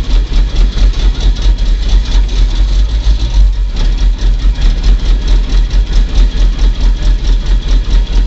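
An engine revs in rapid, rhythmic pulses.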